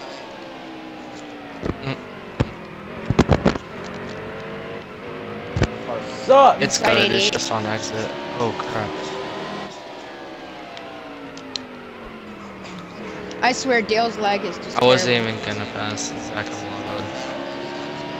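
A race car engine roars steadily, its pitch rising and falling with speed.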